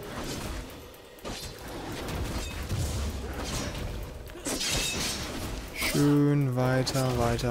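Weapons clash and spells burst in a video game fight.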